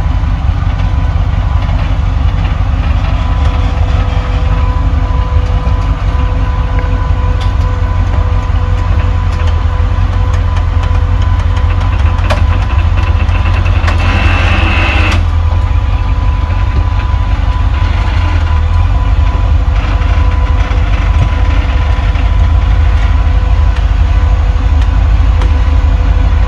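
Tyres grind and scrape over rocks.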